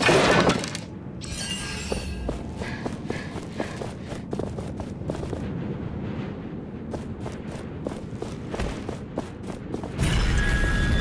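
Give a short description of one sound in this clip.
Footsteps patter quickly over stone and grass.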